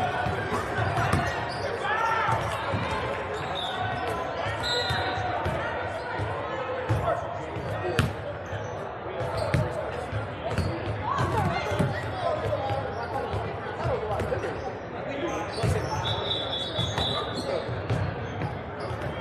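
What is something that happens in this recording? A crowd murmurs and chatters in a large echoing gym.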